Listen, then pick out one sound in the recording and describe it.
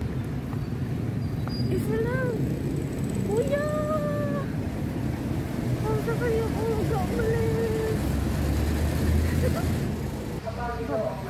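A motor tricycle engine rumbles nearby.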